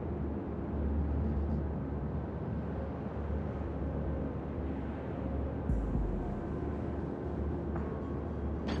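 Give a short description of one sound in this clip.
Waves wash against a ship's hull.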